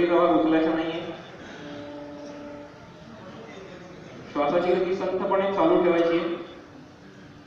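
A man chants long, drawn-out notes outdoors.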